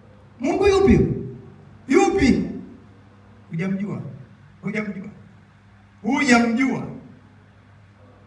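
A man speaks with animation through a microphone and loudspeakers, in short bursts.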